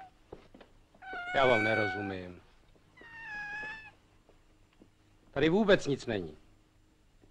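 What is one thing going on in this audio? A man speaks into a telephone.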